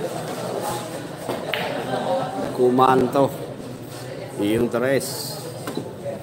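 Billiard balls clack together and roll across the table.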